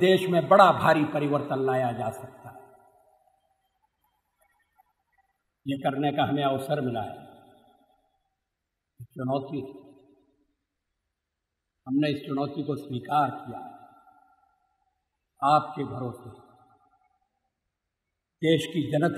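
An elderly man speaks slowly and deliberately, pausing between phrases.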